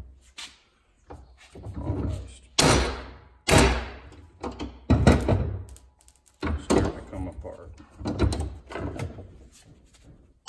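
Metal parts clink and scrape against each other.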